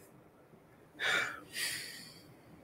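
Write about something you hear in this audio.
A young man sighs heavily.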